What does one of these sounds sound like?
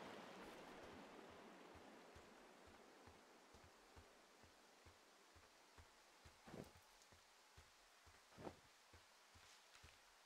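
Footsteps crunch softly on dry ground.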